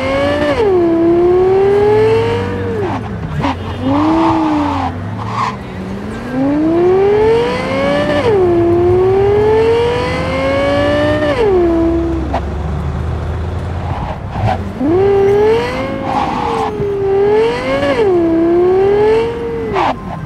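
A sports car engine roars, revving up and dropping as the gears shift.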